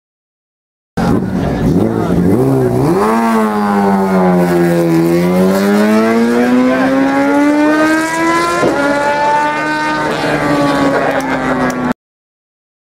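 A motorcycle engine roars, its pitch falling and then climbing as it speeds up.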